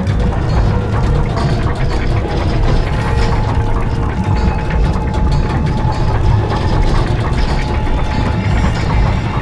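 Fires crackle and roar steadily.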